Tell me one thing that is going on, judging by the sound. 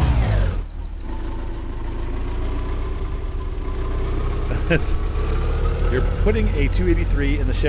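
An old car engine hums and rumbles steadily.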